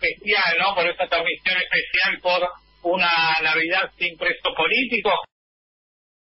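A middle-aged man speaks calmly into microphones close by.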